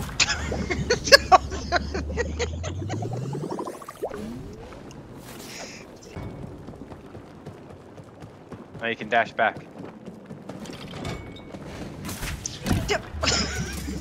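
Molten lava bubbles and rumbles steadily.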